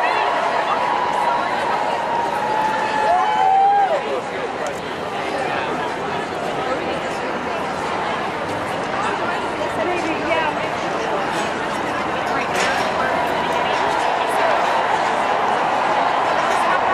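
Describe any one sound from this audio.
A large crowd of men and women chatters loudly all around outdoors.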